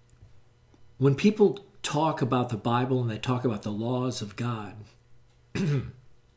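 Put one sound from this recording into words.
An elderly man speaks calmly and closely into a microphone.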